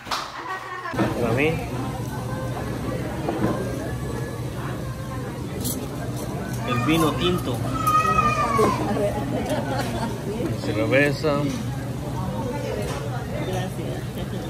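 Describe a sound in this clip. A crowd of men and women chatter all around.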